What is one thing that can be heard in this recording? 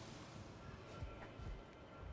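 A heavy thud sounds as a figure lands after a drop.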